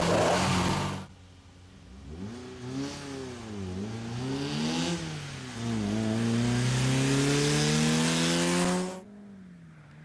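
A rally car engine revs hard through the gears as the car speeds past.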